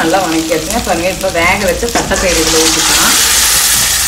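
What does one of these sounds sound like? Dry beans pour and patter into a pan.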